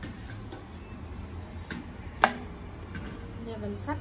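A metal pan clinks against a pot.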